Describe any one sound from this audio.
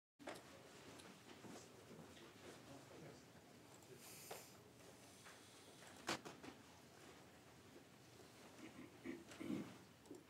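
Several men and women murmur and talk quietly in an indoor room.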